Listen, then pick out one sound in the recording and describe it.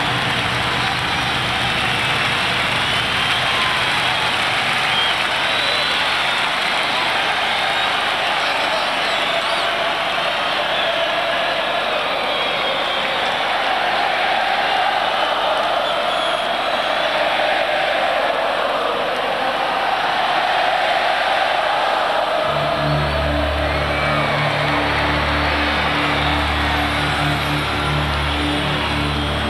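A huge crowd cheers and screams loudly in a large open stadium.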